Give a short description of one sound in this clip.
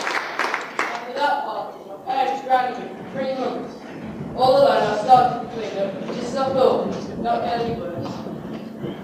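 A young man sings through a microphone in a large echoing hall.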